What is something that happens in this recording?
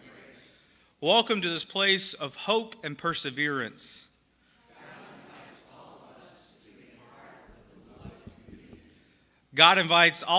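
A man speaks loudly and warmly through a microphone in an echoing hall.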